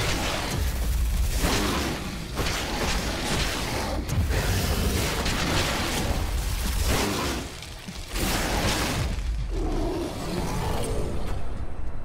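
Blades slash and tear through flesh in a loud, frantic fight.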